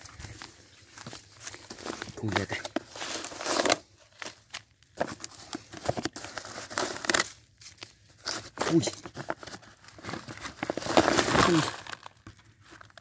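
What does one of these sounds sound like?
A plastic sack crinkles and rustles as hands handle it.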